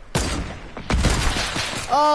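A sniper rifle fires a loud single shot.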